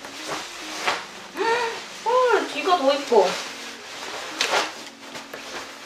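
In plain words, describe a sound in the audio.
A fleece jacket rustles as it is handled.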